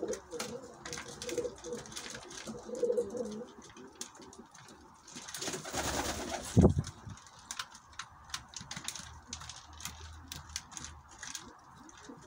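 Pigeons peck rapidly at grain in a feeder, with quick light clicks.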